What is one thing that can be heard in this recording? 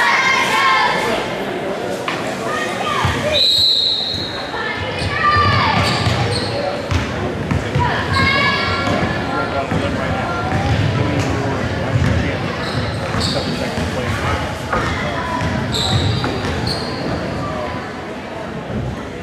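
A crowd cheers and chatters throughout a large echoing gym.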